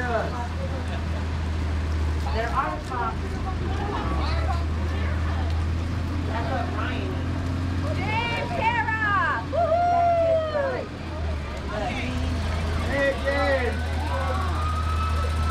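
A small utility vehicle's engine hums low and steady as it rolls past.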